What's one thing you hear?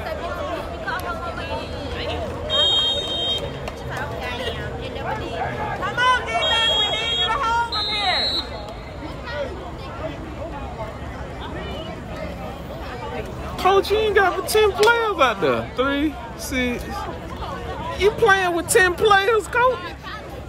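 A crowd of people chatters and shouts outdoors at a distance.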